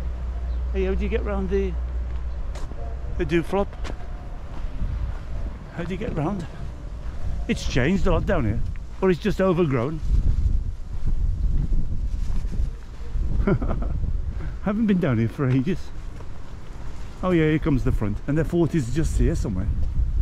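An elderly man talks calmly close to the microphone.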